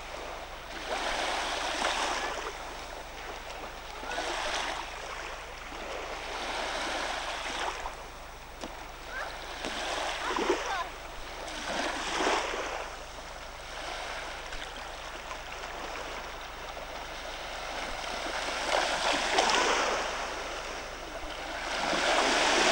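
Water splashes as swimmers paddle close by.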